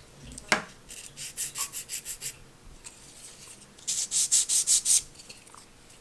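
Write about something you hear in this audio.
A thin piece is filed with quick, rasping strokes.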